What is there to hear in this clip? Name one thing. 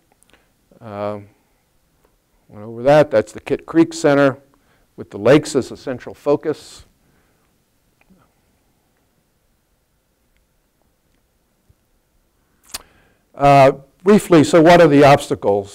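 A man speaks calmly into a microphone, pausing now and then.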